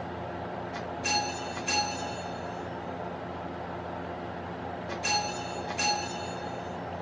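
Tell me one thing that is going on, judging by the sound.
A bright electronic chime rings several times.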